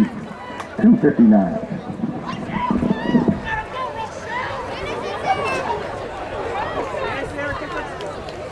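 A crowd of young people chatter and cheer outdoors.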